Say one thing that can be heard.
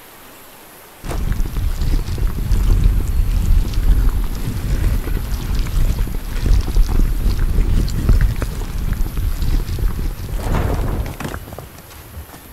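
A heavy stone slab grinds and rumbles as it slides.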